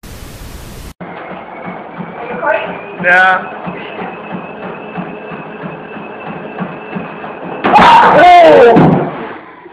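A treadmill belt whirs steadily.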